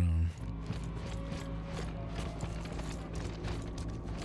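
Heavy boots thud slowly on a gritty floor.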